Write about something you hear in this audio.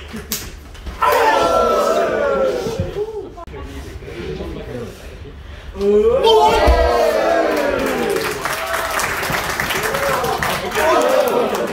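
A small crowd of young people shouts and cheers loudly nearby.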